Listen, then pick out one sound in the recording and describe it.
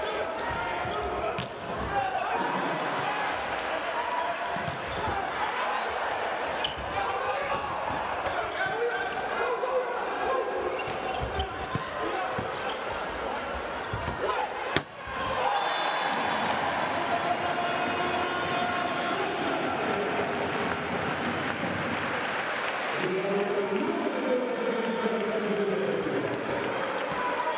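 A crowd in a large echoing hall cheers and murmurs.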